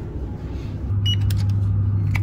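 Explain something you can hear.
An electronic door lock beeps briefly.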